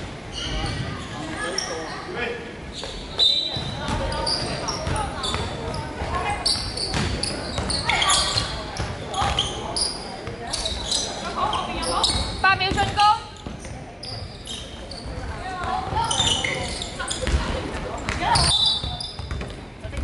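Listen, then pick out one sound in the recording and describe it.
Young women call out and shout to one another in a large echoing hall.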